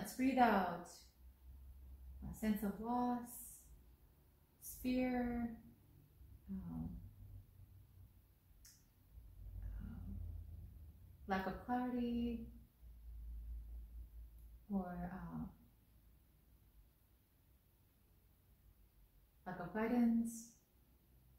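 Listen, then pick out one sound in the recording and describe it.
A woman speaks slowly and calmly close by, with long pauses between phrases.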